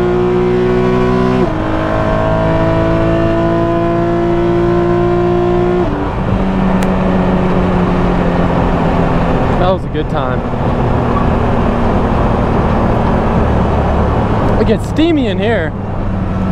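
A race car engine roars loudly from inside the cabin, dropping in pitch with each gear change.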